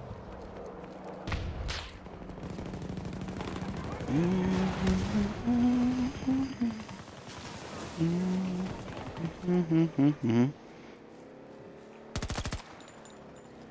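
Distant gunfire and explosions rumble in the background.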